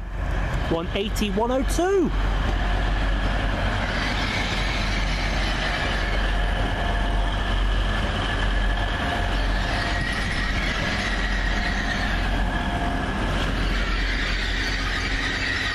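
A train rumbles past at speed with a loud roar.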